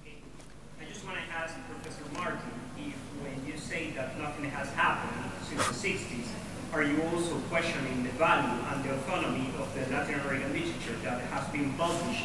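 A man asks a question from a distance, off-microphone in an echoing hall.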